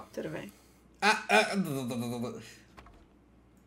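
A young man laughs close to a microphone.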